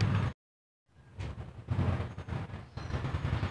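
Metal hand tools clink against a tiled floor.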